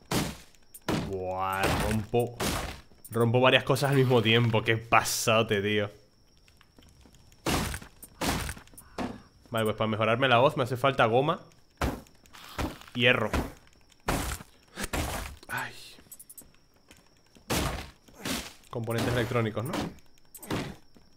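A young man talks with animation close to a headset microphone.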